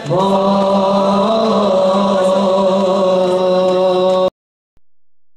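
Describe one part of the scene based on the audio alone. A crowd of men chants together loudly in an echoing hall.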